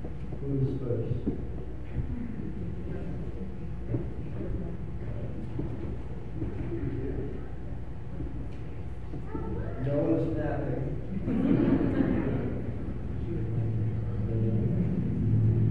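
A man speaks calmly to a small group in a reverberant hall.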